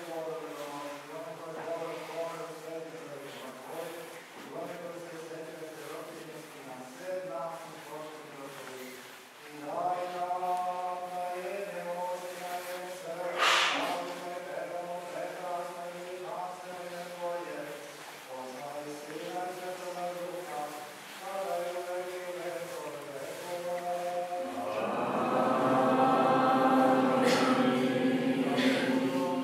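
A man chants in a slow, steady voice in a reverberant hall.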